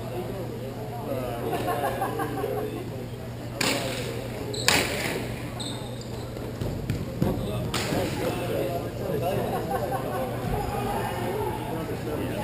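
Young players shout and call out across the rink.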